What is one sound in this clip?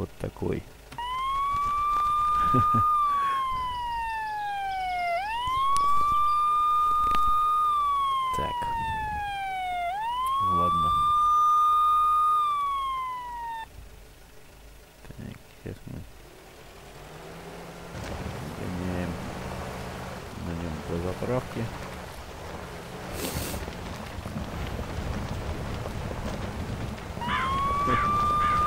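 A siren wails in rising and falling sweeps.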